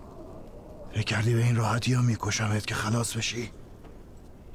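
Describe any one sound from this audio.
A man speaks loudly and forcefully, close by.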